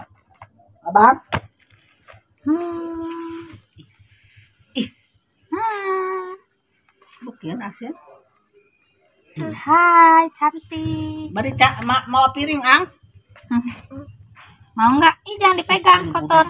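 A young girl speaks and calls out with animation close by.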